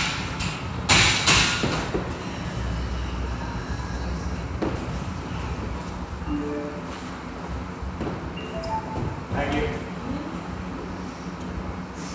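A woman's hands and feet thud on the floor as she kicks up into a handstand.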